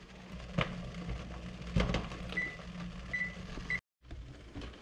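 Food simmers and bubbles in a covered pot.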